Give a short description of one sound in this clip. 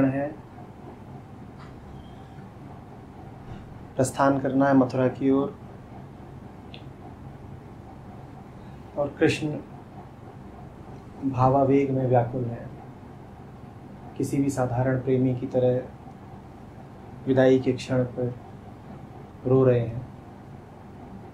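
A man speaks calmly and slowly into a nearby microphone, with long pauses.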